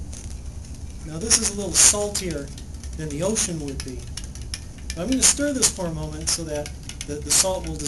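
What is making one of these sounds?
A spoon clinks against a glass as a man stirs.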